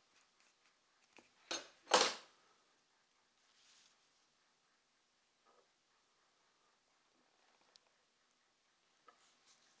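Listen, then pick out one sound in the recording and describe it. Hands handle stiff leather pieces with soft rustles and taps.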